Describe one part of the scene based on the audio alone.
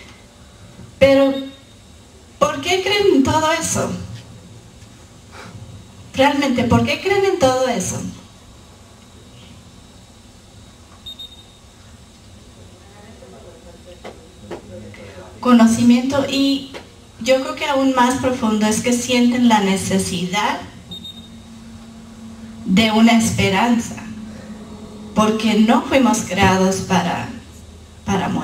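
A woman speaks into a microphone in bursts, with pauses between phrases.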